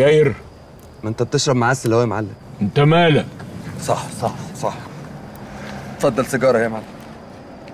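An elderly man speaks in a low, calm voice.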